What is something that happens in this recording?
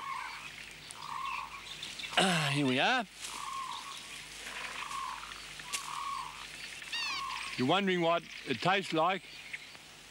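A large animal shifts and rustles in dry leaves.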